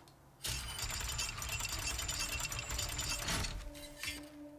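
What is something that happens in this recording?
A heavy wooden winch rattles and creaks as it turns.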